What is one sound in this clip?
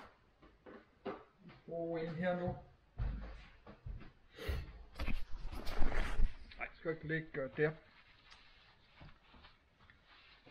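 A paper towel rustles and crumples in a hand.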